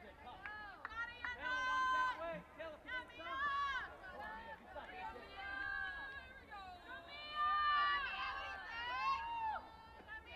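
A group of young girls chant and sing a cheer together loudly and close by.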